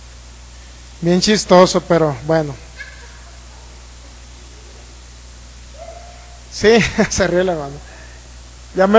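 A man speaks with animation into a microphone, heard through loudspeakers in an echoing room.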